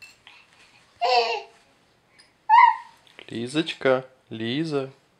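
A baby coos and babbles up close.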